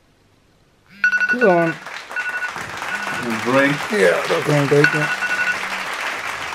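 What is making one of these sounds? A phone alarm beeps in quick repeated bursts.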